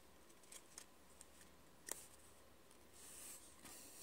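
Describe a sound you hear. Trading cards rub and slide against each other.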